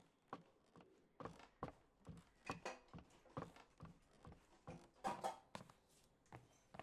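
Footsteps tap steadily across a wooden floor.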